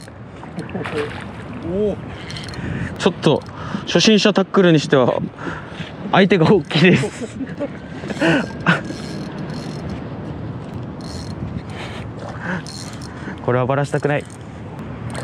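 A man talks excitedly nearby.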